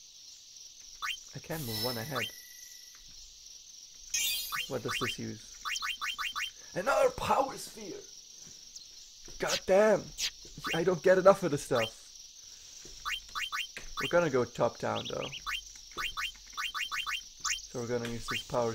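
Short electronic menu blips chime in quick runs.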